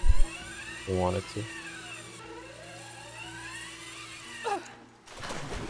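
A hook whines as it slides fast along a zip line.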